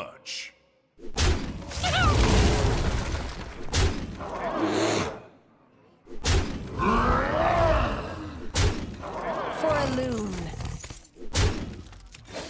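Game sound effects thump and crash as cards attack.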